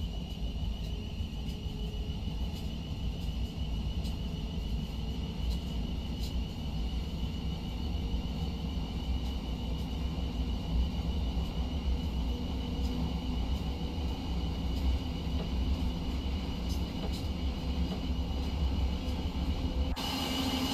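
Train wheels click over rail joints.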